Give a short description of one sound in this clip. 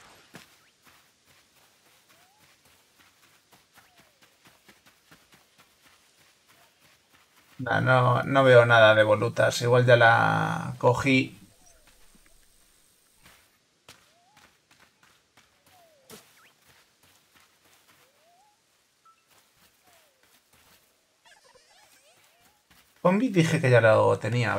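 Light footsteps patter quickly over grass.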